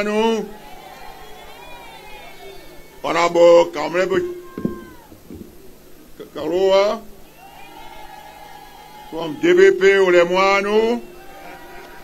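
A man speaks loudly into a microphone over a loudspeaker, in bursts with pauses.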